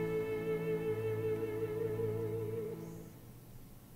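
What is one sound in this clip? A choir and orchestra hold a loud final chord that rings out in a large echoing hall.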